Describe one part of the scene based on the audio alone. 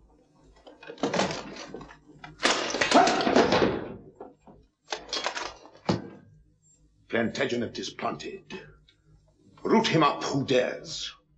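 A man speaks sternly in reply.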